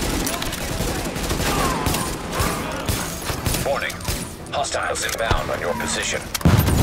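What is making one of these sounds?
Rifles fire sharp, repeated shots.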